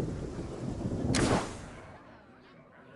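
A deep game explosion rumbles and then fades away.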